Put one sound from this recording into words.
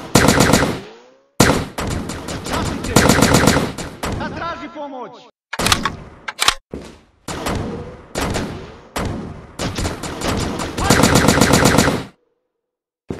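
A rifle fires rapid bursts that echo loudly.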